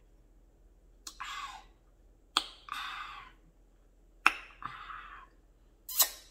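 A woman slurps a drink through a straw close up, in short bursts.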